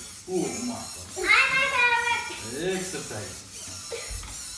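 A young girl shouts and squeals excitedly.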